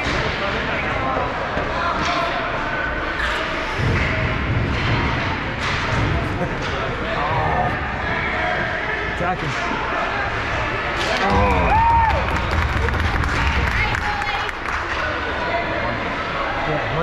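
Children's voices shout and call out in a large echoing arena.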